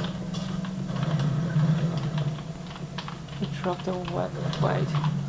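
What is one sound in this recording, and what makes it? Keys clack on a computer keyboard.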